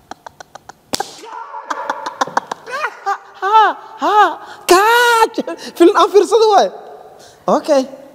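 Two men laugh loudly together.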